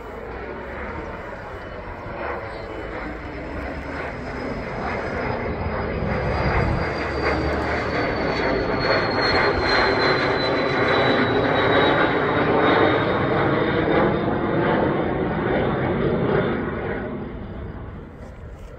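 A jet engine roars overhead, growing louder and then fading with a slowly falling whine.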